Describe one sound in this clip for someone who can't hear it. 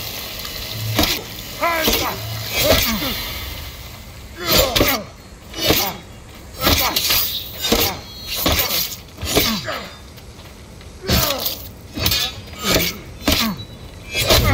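Blades clash and strike again and again in a close fight.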